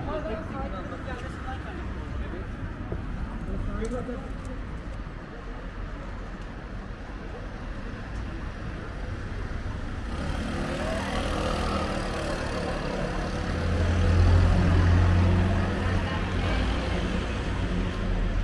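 Footsteps walk along a street outdoors.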